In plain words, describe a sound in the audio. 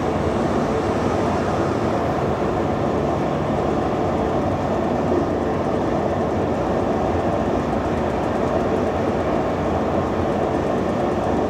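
A car engine hums steadily at highway speed.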